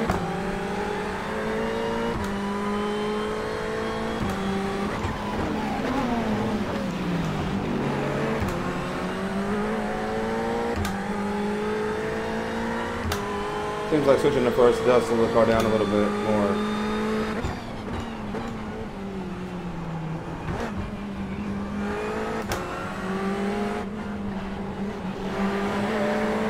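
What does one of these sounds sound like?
A racing car engine revs high, dropping in pitch at each gear change and rising again.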